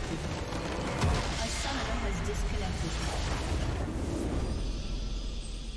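A large structure explodes with a deep rumbling blast.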